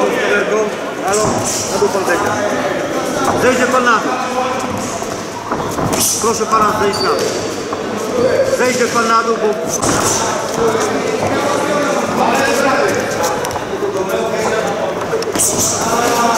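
Boxing gloves thud against a body and gloves.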